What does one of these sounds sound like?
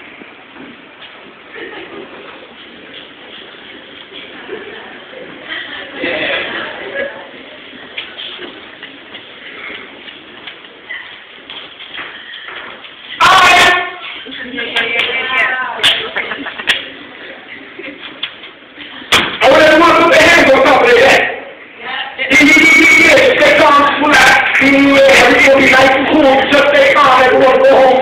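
A man sings loudly into a microphone, heard through loudspeakers in a large echoing hall.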